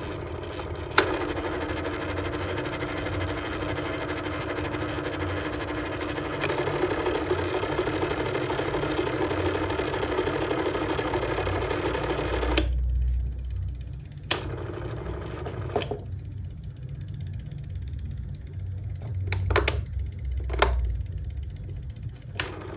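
A fan's switch knob clicks.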